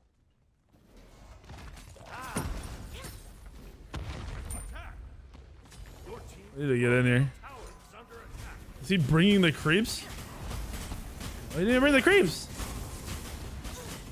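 Game combat sounds crash and whoosh.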